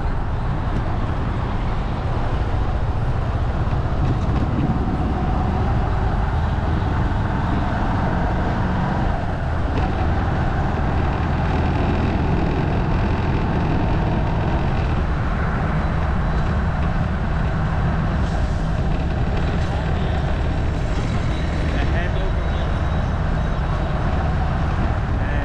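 A car engine hums as it drives along a road.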